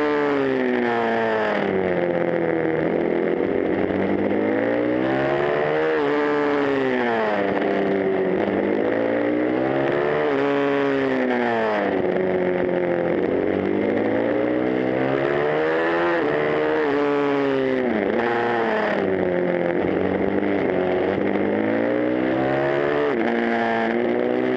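A motorcycle engine roars close by, revving up and down through the gears.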